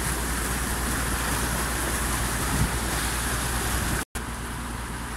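Muddy water rushes and splashes.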